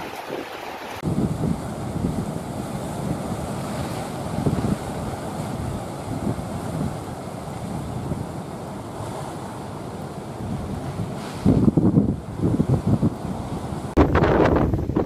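Heavy surf crashes and churns against rocks.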